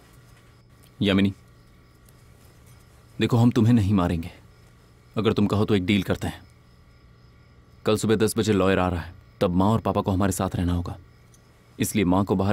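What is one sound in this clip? A man speaks tensely in short bursts, close by.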